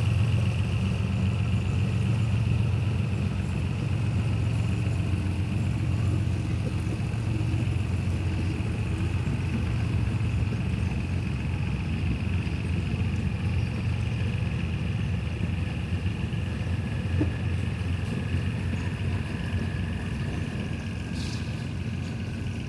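A diesel locomotive rumbles steadily as a train rolls slowly along the tracks.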